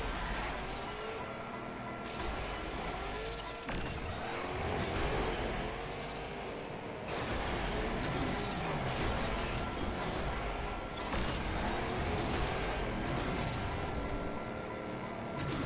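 Racing car engines whine and roar at high speed.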